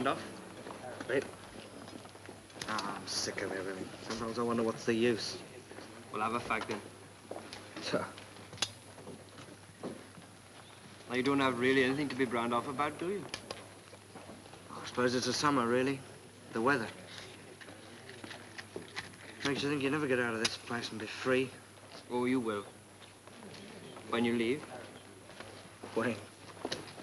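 A second young man answers calmly, close by.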